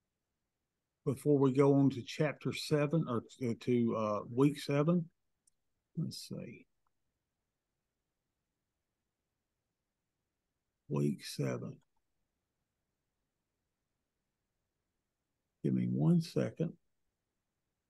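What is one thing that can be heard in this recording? A middle-aged man speaks calmly over an online call, in short bursts with long pauses.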